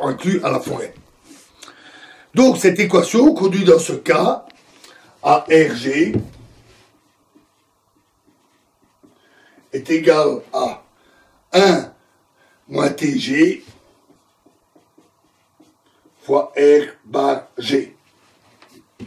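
A middle-aged man talks calmly close by, in short bursts with pauses.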